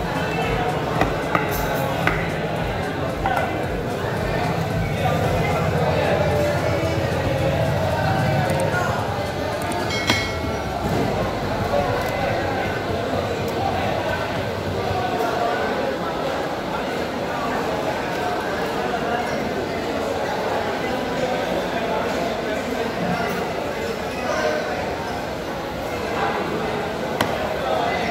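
A knife chops and scrapes on a wooden block.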